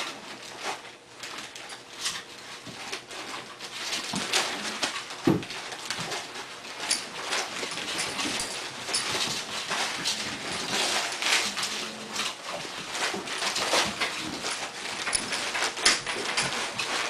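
Dog claws click and patter on a hard tile floor.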